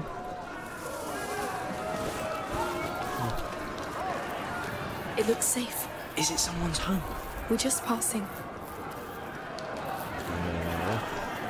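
Footsteps scuff over stone.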